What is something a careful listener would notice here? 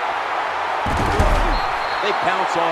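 Football players collide in a heavy tackle.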